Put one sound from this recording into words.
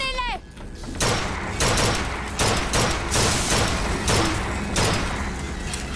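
A gun fires repeated shots.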